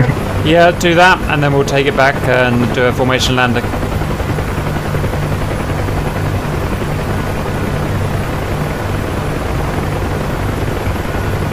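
A helicopter's rotor thumps and its engine drones steadily from close by.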